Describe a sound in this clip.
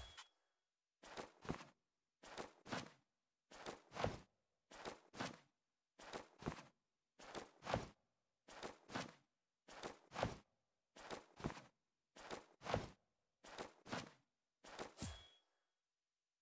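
Short bursts of electronic music pulse in a steady rhythm.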